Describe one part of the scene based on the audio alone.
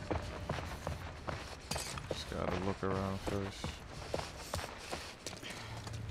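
Footsteps walk steadily over a hard floor.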